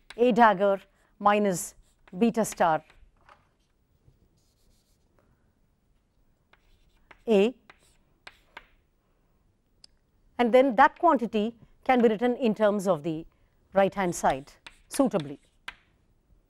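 A woman lectures calmly through a microphone, in short phrases with pauses.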